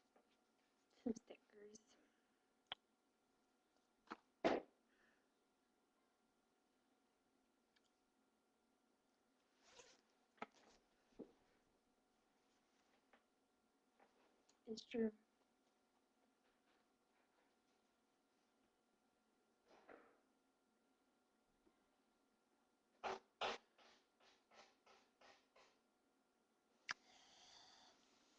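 A girl speaks briefly and softly, close to a microphone.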